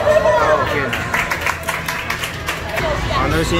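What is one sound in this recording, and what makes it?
A young man claps his hands.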